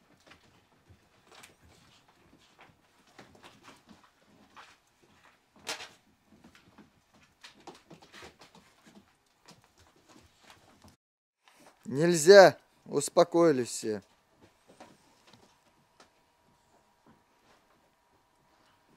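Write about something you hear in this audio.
Puppies shuffle and scratch softly on a cushioned sofa.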